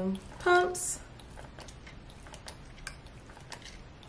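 A pump bottle squirts liquid into a plastic bowl.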